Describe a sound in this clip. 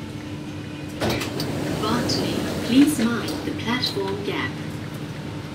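A woman speaks briefly and calmly, close by.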